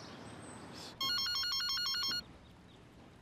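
A phone rings with a short electronic tone.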